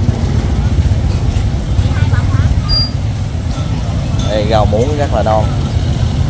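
A busy outdoor market crowd murmurs and chatters nearby.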